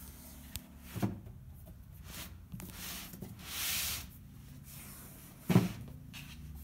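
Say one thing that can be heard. A cardboard box knocks against a table.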